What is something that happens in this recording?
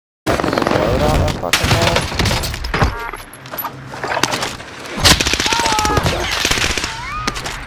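A submachine gun fires rapid bursts.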